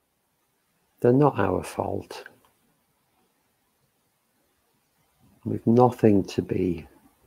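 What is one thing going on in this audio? An elderly woman speaks calmly and slowly into a close microphone, with long pauses.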